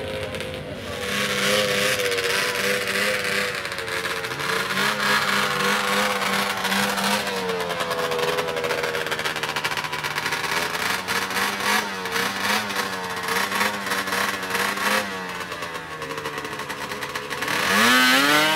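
A snowmobile engine idles and revs unevenly nearby.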